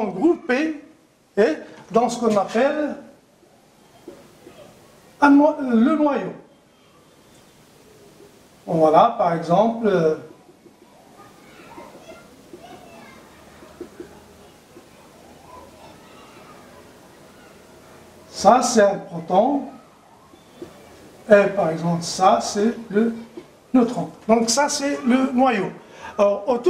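A middle-aged man speaks calmly, explaining, close by.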